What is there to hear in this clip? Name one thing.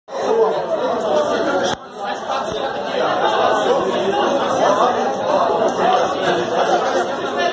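Several men talk and chatter loudly close by.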